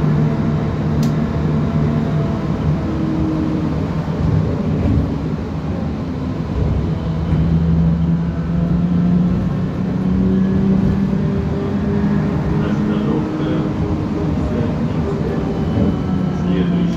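Traffic rushes past on a wet road outside.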